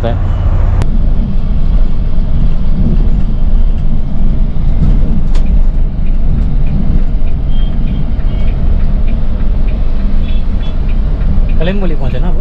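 A bus engine rumbles steadily from inside the cab.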